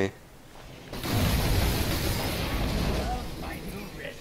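A game spell bursts with a rushing, crackling whoosh.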